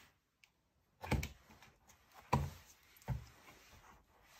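Stiff cardboard pages of a book are turned and thump softly.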